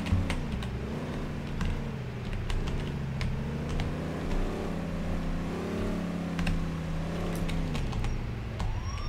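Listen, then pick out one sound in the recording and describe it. A car engine hums and revs as a vehicle drives, then slows down.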